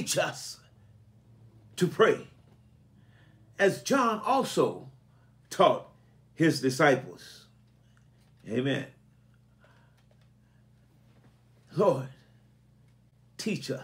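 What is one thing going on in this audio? An elderly man speaks calmly and close to a microphone, in short phrases with pauses.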